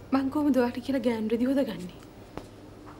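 A woman speaks calmly and close by.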